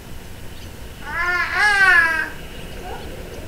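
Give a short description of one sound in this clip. A juvenile red-tailed hawk calls with a drawn-out, wavering scream.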